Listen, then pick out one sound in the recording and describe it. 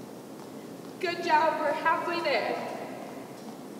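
A young girl speaks out loudly.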